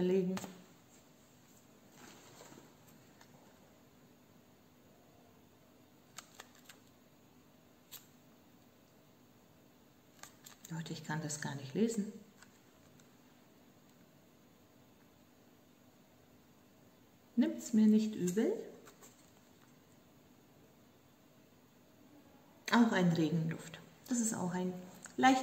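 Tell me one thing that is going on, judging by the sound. A woman speaks calmly and close by, in short bursts.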